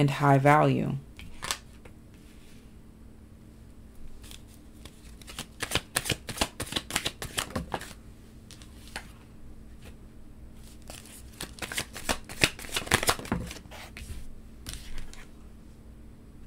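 Cards are laid down with soft taps.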